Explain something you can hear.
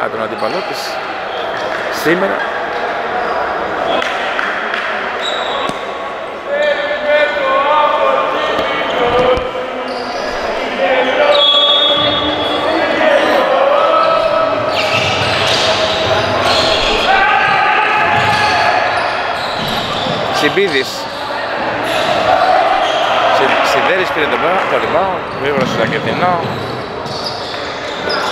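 A crowd of spectators cheers and chants in an echoing hall.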